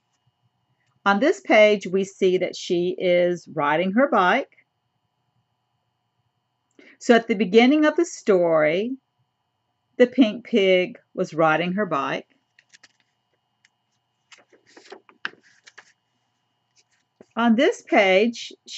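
An older woman reads aloud slowly and expressively, close to a microphone.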